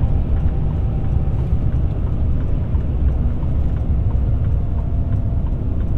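Wind buffets loudly against a moving car.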